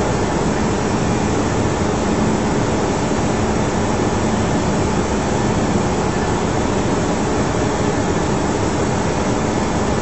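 A steady loud roar of air and engines fills an aircraft cockpit in flight.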